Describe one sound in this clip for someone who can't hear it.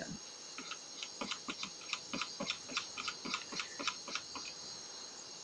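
Soft menu ticks click rapidly, one after another.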